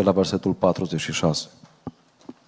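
A man speaks loudly into a microphone in an echoing hall.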